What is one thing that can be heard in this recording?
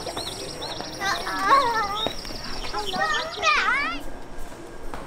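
Young girls laugh and chatter excitedly nearby.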